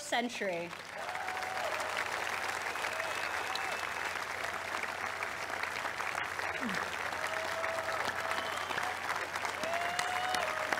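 People in the crowd whistle loudly.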